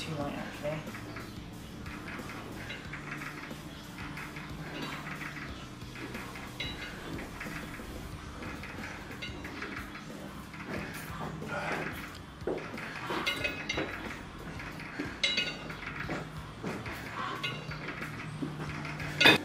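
A weight machine's stack clanks softly with each repetition.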